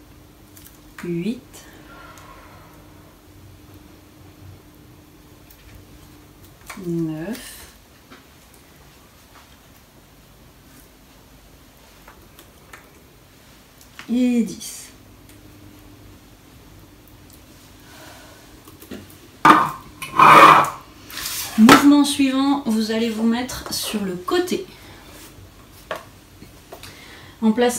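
A woman speaks calmly close by, in short phrases with pauses.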